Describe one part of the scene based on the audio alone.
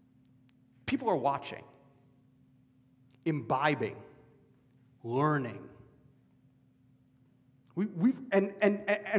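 A young man speaks expressively in short bursts, heard through a microphone in a room with some echo.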